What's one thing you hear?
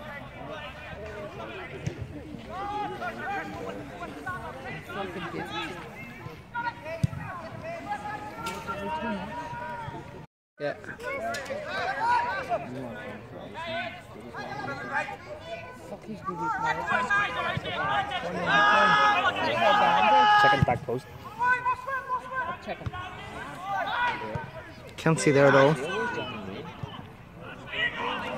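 Men in a nearby crowd shout and cheer loudly outdoors.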